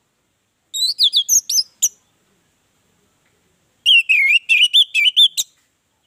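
An orange-headed thrush sings in two bursts of varied whistled phrases.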